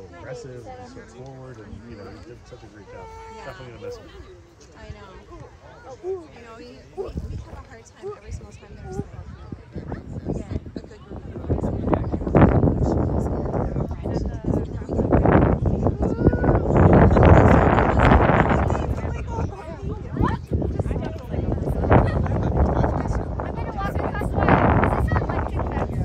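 Children chatter and call out close by, outdoors.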